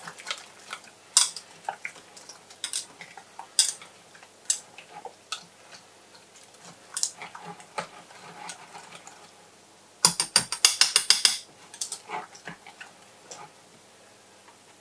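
A whisk clinks rapidly against a metal bowl.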